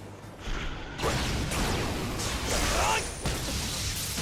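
A whooshing rush sweeps past.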